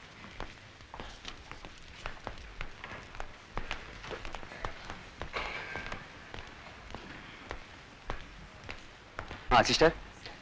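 Footsteps click on a hard floor.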